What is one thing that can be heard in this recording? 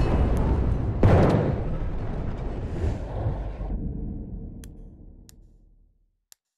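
An explosion booms and slowly rumbles away.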